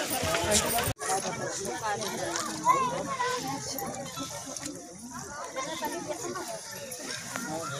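Women's voices talk and call out nearby.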